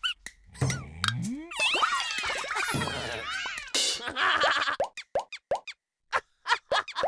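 Cartoon balls bounce with quick springy boings.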